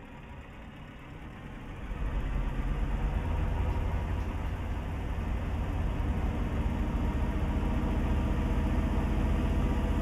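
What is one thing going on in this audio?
A truck engine rumbles low and steadily, growing louder.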